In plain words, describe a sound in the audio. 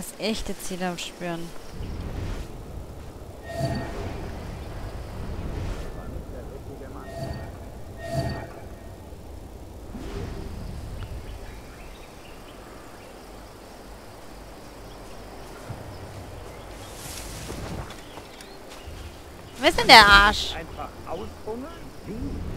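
Leaves and stalks rustle as someone pushes through dense plants.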